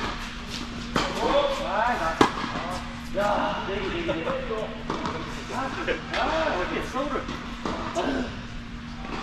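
Men talk to each other across the court.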